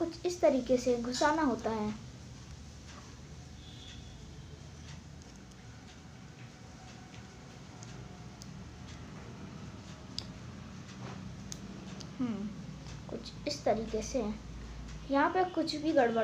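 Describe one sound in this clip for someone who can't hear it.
Small plastic parts click in fingers.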